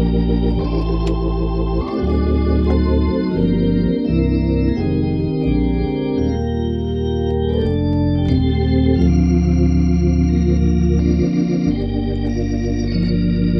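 A keyboard plays a melody over deep, sustained chords.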